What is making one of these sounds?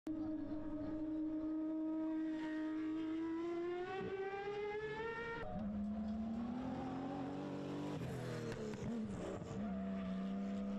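Car engines rev loudly, rising and falling in pitch.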